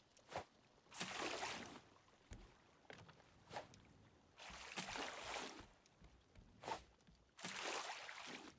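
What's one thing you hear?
Water splashes briefly.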